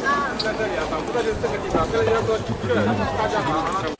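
A middle-aged man talks close by.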